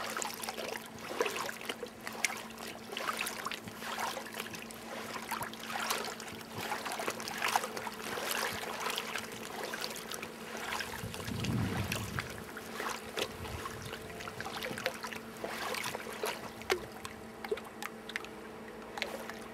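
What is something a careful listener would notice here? A river flows and ripples steadily.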